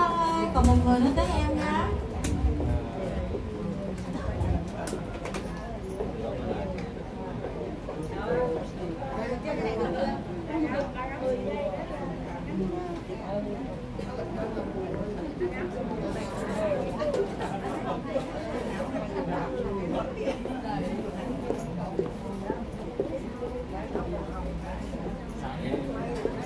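An electronic keyboard plays along.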